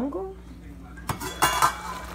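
A metal lid clinks against a pot.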